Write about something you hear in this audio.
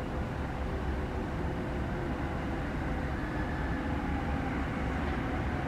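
A train's motor hums and whines as it slows.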